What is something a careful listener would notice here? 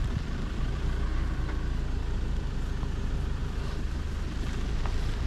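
Wind blows steadily into the microphone outdoors.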